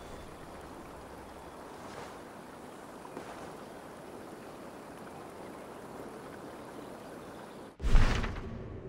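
Wind blows softly across an open hilltop.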